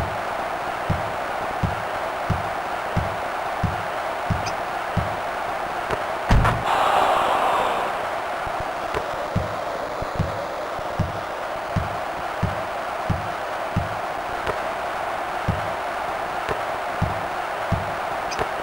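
A crowd murmurs steadily in a large arena.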